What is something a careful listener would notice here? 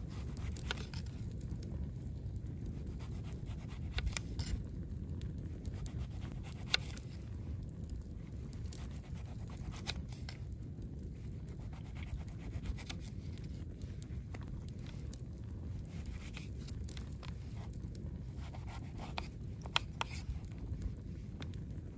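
A knife slices through a lemon.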